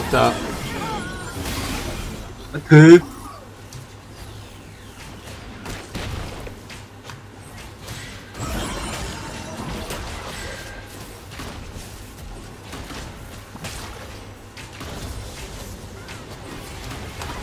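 Game sound effects clash and whoosh.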